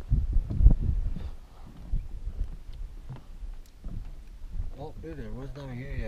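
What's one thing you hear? Water laps gently against a floating dock.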